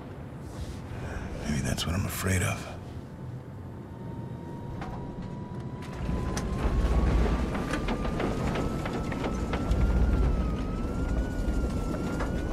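A jet airliner's engines drone with a steady low rumble inside the cabin.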